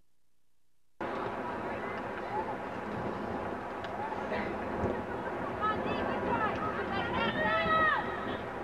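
Young women players call out to each other.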